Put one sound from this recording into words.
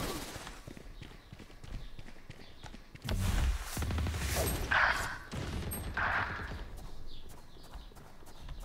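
Game footsteps tap quickly on hard ground.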